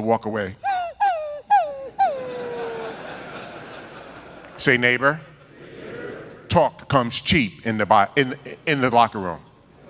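A man preaches with emphasis into a microphone, echoing in a large hall.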